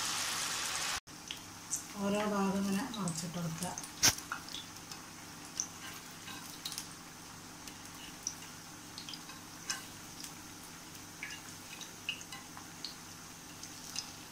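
Hot oil crackles and pops softly as food fries.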